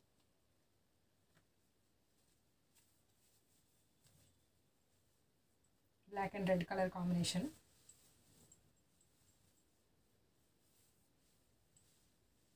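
Fabric rustles as cloth is handled.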